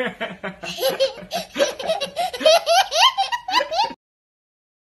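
A young child laughs loudly and gleefully up close.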